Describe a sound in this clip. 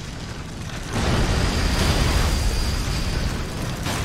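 A heavy blow lands with a deep crashing rumble.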